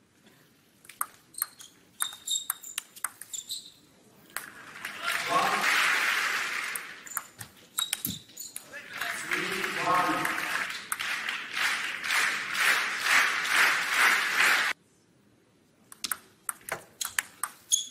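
A table tennis ball clicks sharply back and forth off bats and the table.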